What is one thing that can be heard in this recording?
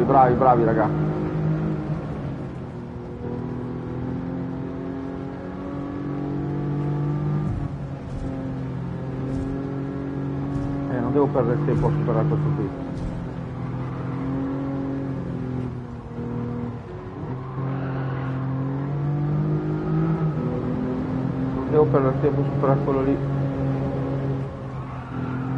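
A racing car engine hums steadily and shifts pitch as the car speeds up and slows down.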